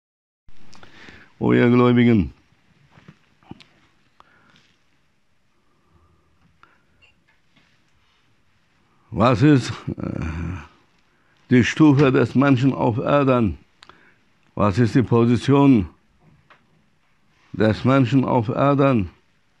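A middle-aged man chants in a drawn-out melodic voice through a close microphone, with pauses between phrases.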